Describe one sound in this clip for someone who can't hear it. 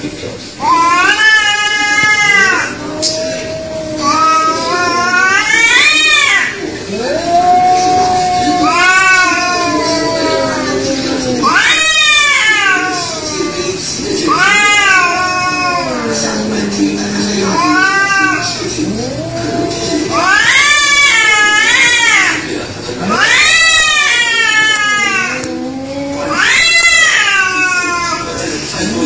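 A cat growls low and steadily.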